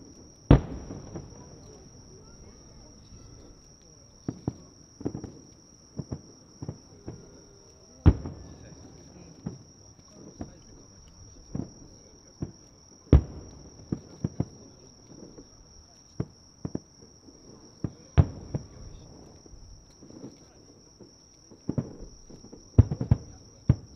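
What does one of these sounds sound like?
Fireworks crackle and pop after the bursts.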